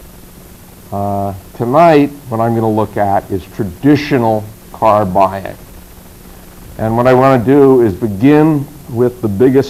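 A middle-aged man speaks calmly into a microphone, close by.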